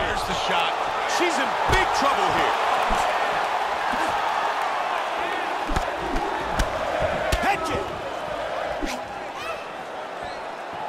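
A large crowd roars steadily in a big arena.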